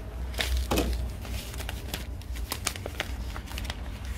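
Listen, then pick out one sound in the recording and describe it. A paper packet crinkles as it is folded.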